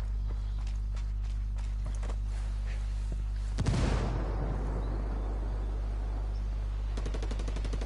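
Footsteps crunch over grass and dirt.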